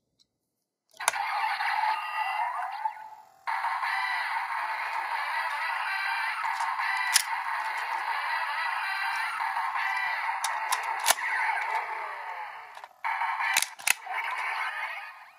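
A toy belt plays loud electronic sound effects and music.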